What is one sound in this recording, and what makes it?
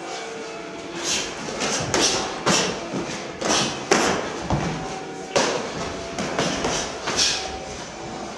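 Boxing gloves thud against padding in a sparring exchange.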